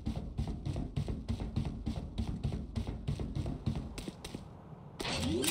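Quick footsteps tap steadily on a hard floor.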